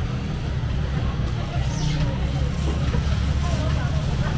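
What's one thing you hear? A plastic bag rustles close by.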